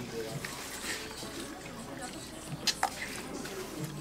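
A man slurps noodles.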